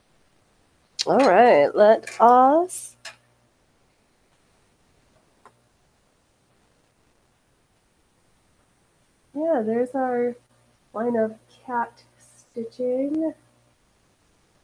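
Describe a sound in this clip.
A young woman speaks calmly into a nearby microphone.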